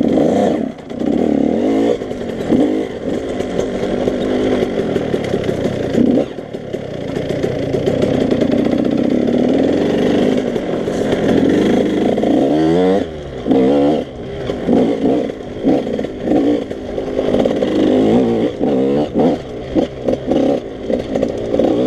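Wind buffets the rider outdoors.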